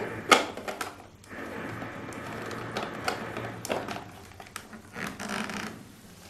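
A plastic cup clicks into place against a machine.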